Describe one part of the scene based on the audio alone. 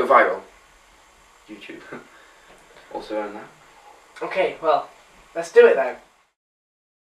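Another young man answers calmly nearby.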